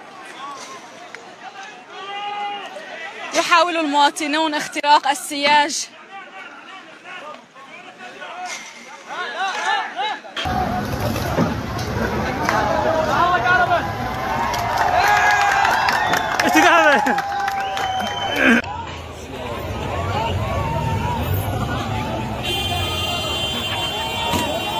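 A crowd of men shouts and chants loudly outdoors.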